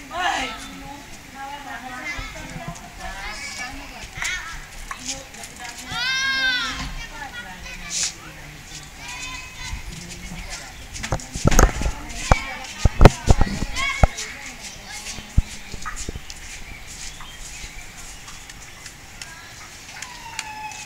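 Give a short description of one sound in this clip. Children shout and call out as they play outdoors.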